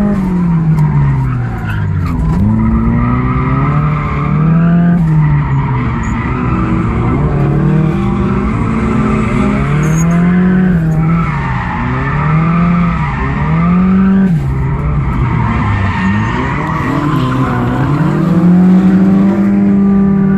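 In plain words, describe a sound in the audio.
A car engine revs up and down loudly from inside the car.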